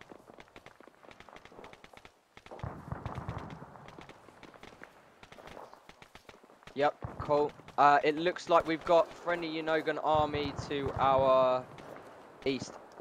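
Footsteps rustle through tall dry grass.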